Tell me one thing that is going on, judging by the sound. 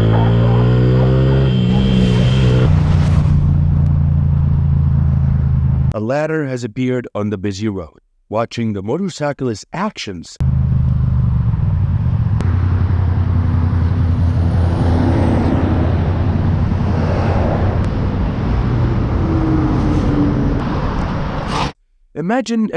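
A motorcycle engine roars loudly and steadily up close.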